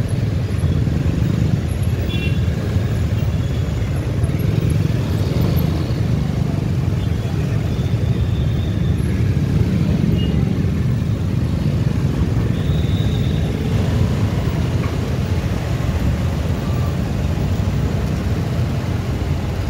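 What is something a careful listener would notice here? Wind buffets the microphone on a moving motorbike.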